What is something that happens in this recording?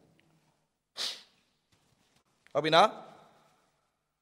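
A man blows his nose into a tissue.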